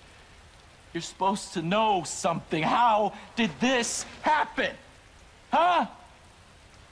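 A middle-aged man shouts angrily, close by.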